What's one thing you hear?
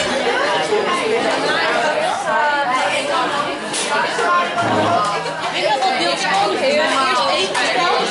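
A crowd of people chatter loudly and close by in an echoing room.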